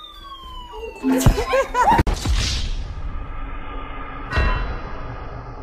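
Several adults shout and laugh nearby.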